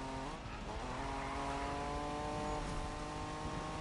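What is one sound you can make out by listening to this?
Tyres screech as a car drifts around a corner.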